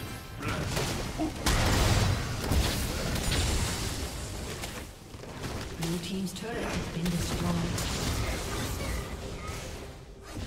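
Magic blasts, clashes and explosions crackle and boom in a fast fight.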